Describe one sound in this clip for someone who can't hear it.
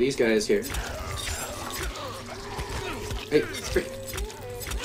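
A blade strikes flesh with wet, heavy blows.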